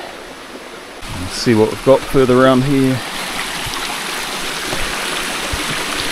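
A small stream trickles over rocks.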